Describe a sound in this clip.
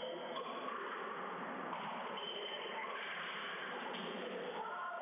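A squash ball smacks off a racket and echoes off the walls.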